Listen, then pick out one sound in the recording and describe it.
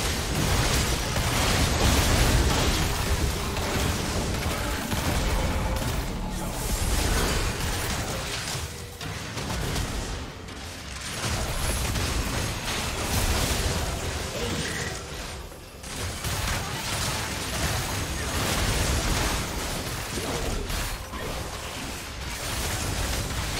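Fantasy battle sound effects clash and burst with spells and hits.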